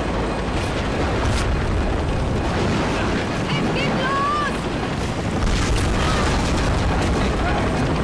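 Thunder cracks and rumbles.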